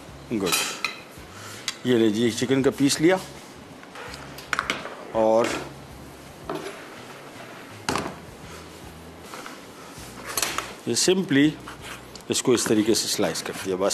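A middle-aged man talks calmly into a microphone.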